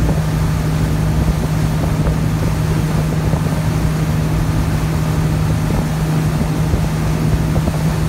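Wind blows hard across a moving boat.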